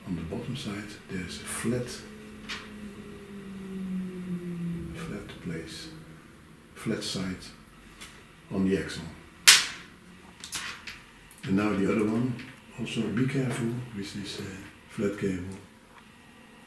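An elderly man talks calmly, close by.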